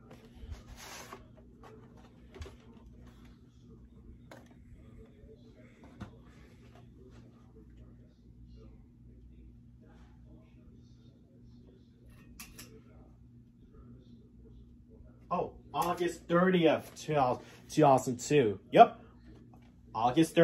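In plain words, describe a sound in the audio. Plastic game cases rustle and clack in hands.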